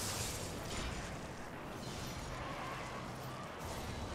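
Bursts of fire roar from swinging blade strikes.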